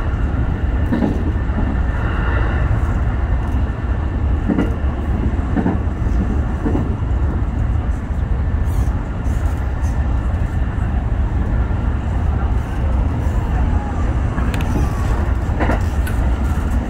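Wheels clatter and squeal over rail joints and points.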